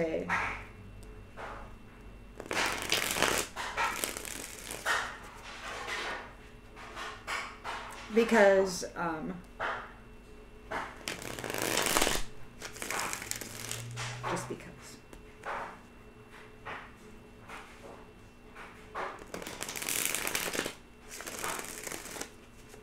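Paper rustles and crinkles as a package is unwrapped.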